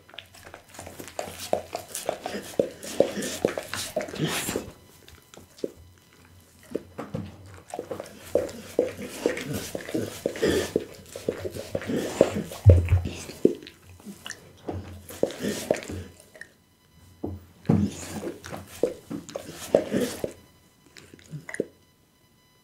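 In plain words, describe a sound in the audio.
A dog licks and slurps wetly close to a microphone.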